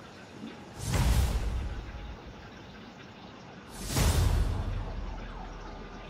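A game notification sounds with a loud whooshing swell.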